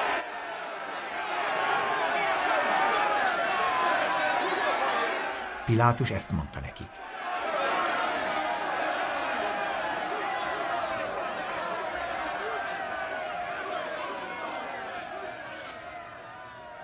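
A large crowd shouts and clamours all around.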